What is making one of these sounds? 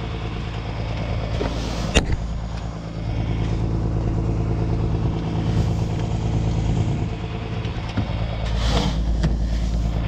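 A plastic bucket scrapes through seed grains.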